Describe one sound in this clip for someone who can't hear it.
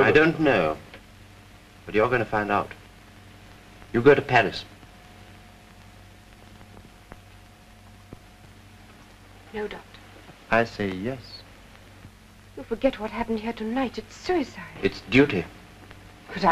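A young woman speaks briefly and quietly.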